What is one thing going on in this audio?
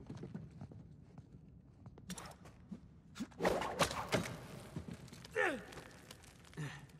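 Hands and feet scrape and knock against stone during a climb.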